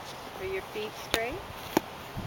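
A plastic golf club swings and taps a ball.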